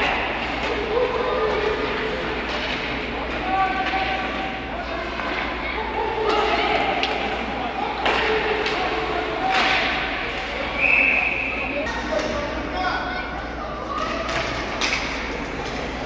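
Ice skates scrape and carve across the ice in an echoing rink.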